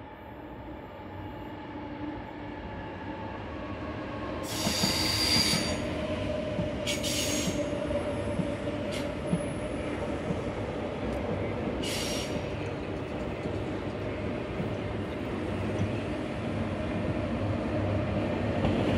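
A high-speed train approaches and rumbles past on the tracks, growing louder.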